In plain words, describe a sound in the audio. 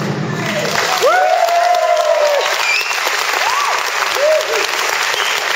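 Young performers shout out together at the end of the drumming.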